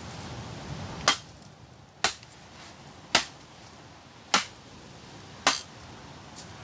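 A machete chops into a branch with sharp knocks.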